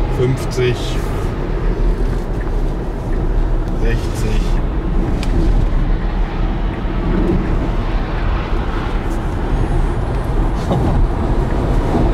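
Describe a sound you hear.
A lorry rumbles past close by.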